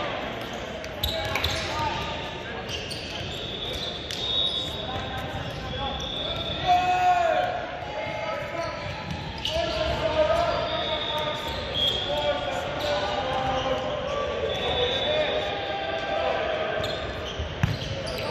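A volleyball thuds off a player's hands.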